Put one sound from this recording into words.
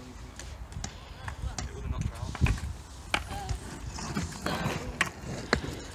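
Skateboard wheels roll on concrete.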